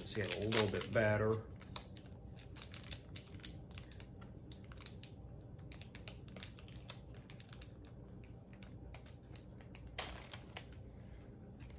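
A foil card pack crinkles and rustles as hands tear it open.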